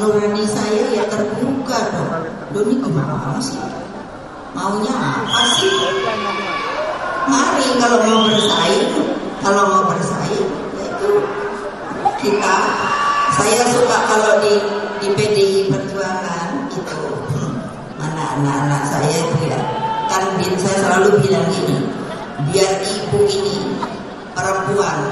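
An elderly woman speaks with animation through a microphone.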